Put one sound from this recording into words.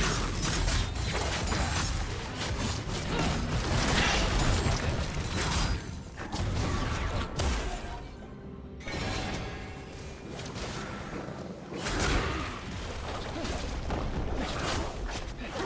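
Magic blasts and weapon hits crackle and thump in a busy fight.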